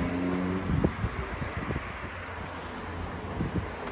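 A car's tailgate latches shut with a soft thud.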